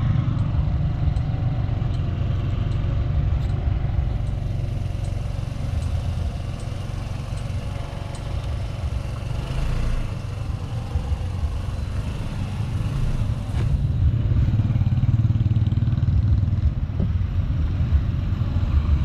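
A scooter engine idles with a low, steady rumble.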